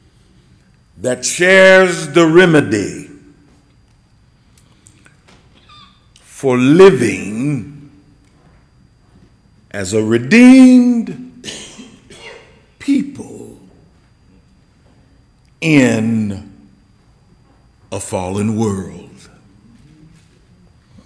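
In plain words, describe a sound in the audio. A middle-aged man speaks slowly and forcefully into a microphone, in short phrases with pauses, in a large echoing room.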